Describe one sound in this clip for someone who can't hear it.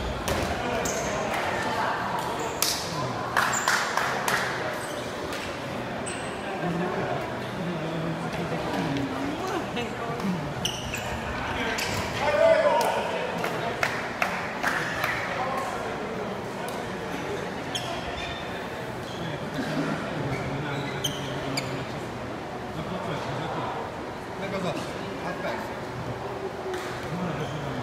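Men and women talk and call out throughout a large echoing hall.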